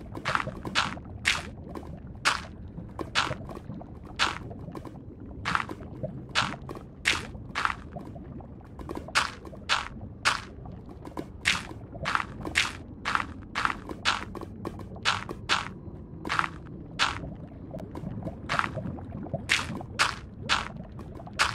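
Lava bubbles and pops steadily.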